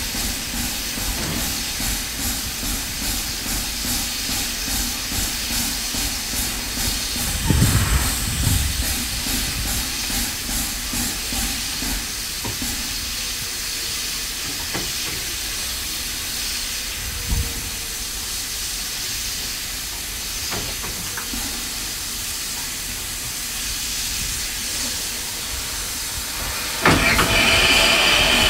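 Steam hisses steadily from a locomotive.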